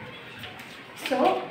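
A young girl speaks calmly nearby.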